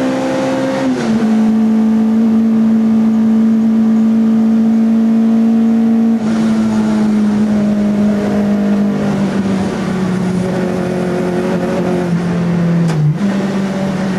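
A race car's gearbox shifts up and down, cutting the engine note briefly.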